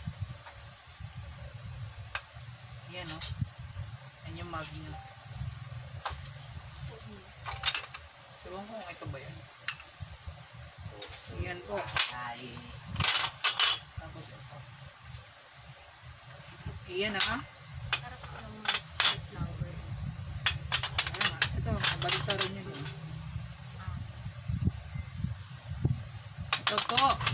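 Ceramic cups and dishes clink and clatter as they are stacked.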